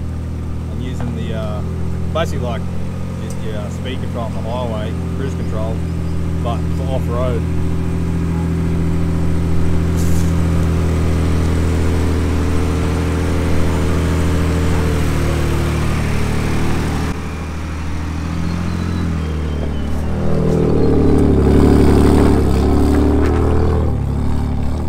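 A truck engine rumbles steadily as it climbs slowly.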